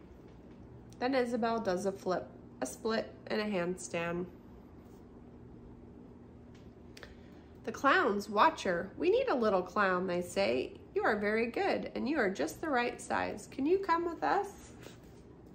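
A woman reads aloud expressively, close by.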